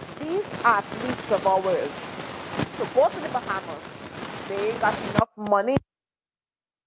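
A middle-aged woman speaks with animation into a close microphone.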